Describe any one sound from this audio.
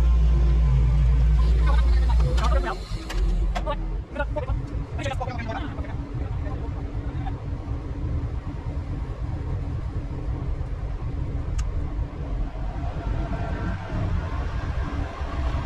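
A heavy machine engine rumbles loudly.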